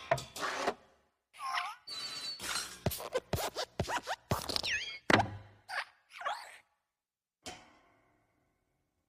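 A small metal lamp hops along with springy squeaks and thuds.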